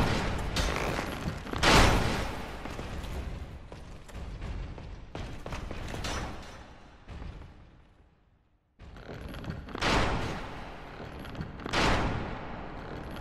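Footsteps patter quickly on stone stairs.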